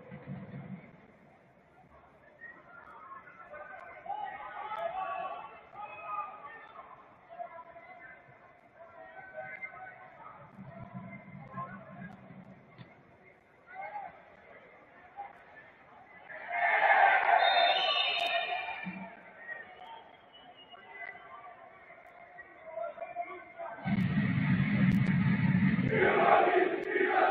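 A stadium crowd cheers and chants in the distance.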